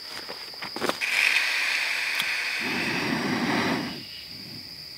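A camping stove's gas hisses as it is lit.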